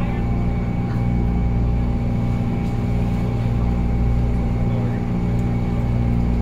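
A stopped train hums steadily nearby.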